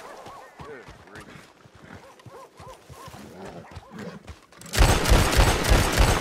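A horse gallops past with pounding hooves.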